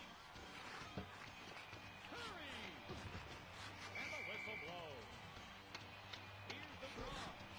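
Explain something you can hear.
Hockey sticks smack a puck with sharp clacks.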